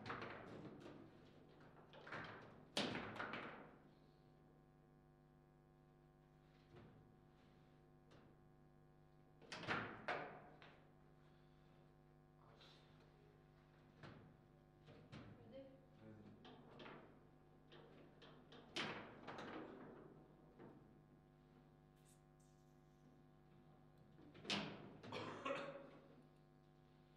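A small hard ball is struck and knocks sharply around a table football table.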